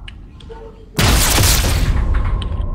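A scoped rifle fires a single loud shot that echoes away.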